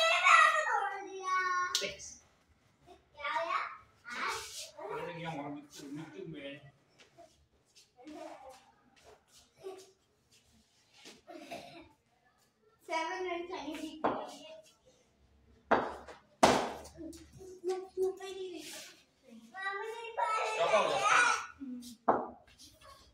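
A young child shouts and chatters with excitement close by.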